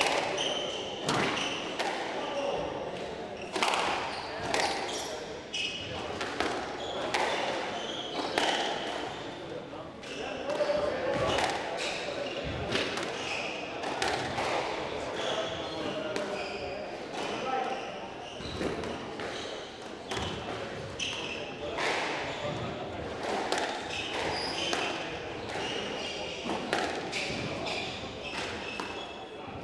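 Rubber shoes squeak on a wooden floor.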